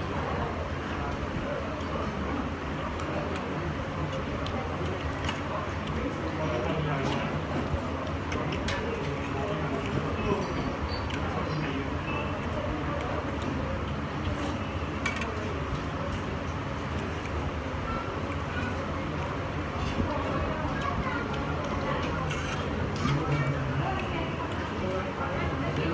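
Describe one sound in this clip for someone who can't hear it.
Cutlery clinks against a bowl.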